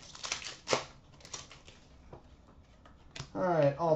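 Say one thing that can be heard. Hands flick through a stack of trading cards.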